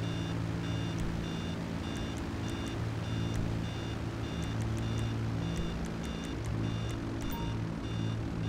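Menu clicks tick softly now and then.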